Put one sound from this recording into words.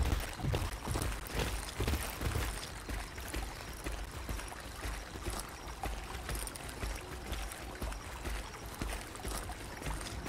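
Leaves and grass rustle as a creature pushes through brush.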